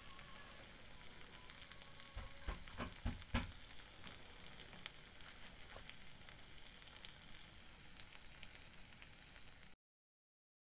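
Sauce sizzles and bubbles in a hot pan.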